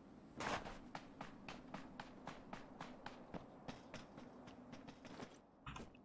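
Quick footsteps crunch and thud at a steady running pace.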